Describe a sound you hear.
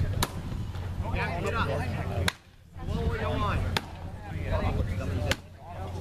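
An axe chops into a wooden block with sharp, regular thwacks.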